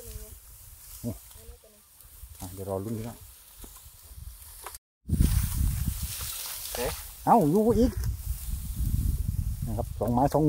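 Dry rice stalks rustle and swish as someone pushes through them.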